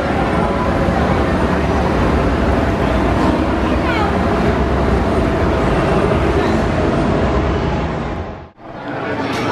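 A steam locomotive hisses steadily as it lets off steam.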